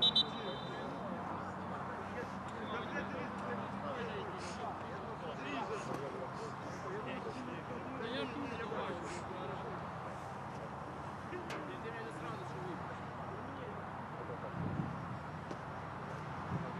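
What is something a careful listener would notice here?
Men shout to each other across an open field in the distance.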